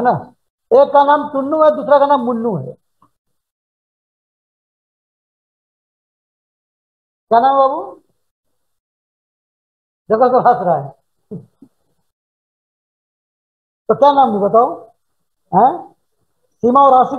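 A man speaks with animation through a headset microphone, in short bursts with pauses.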